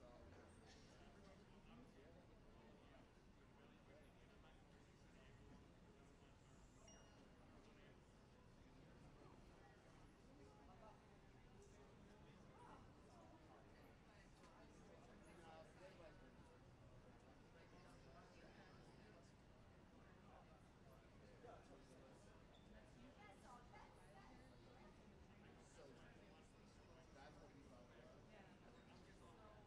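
A crowd of people murmurs in a large echoing hall.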